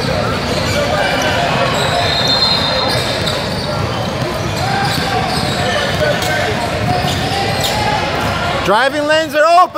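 A crowd of people chatters in the background of an echoing hall.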